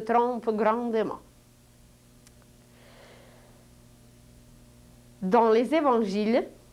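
A middle-aged woman speaks calmly and clearly into a nearby microphone.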